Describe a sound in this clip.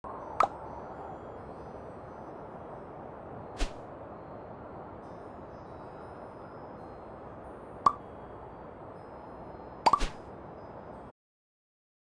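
Soft game music plays steadily, then cuts off.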